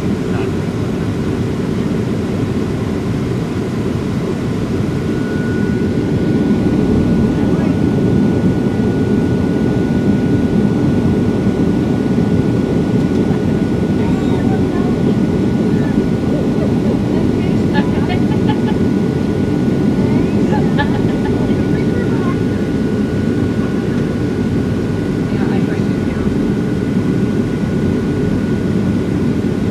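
A jet airliner's engines roar steadily inside the cabin.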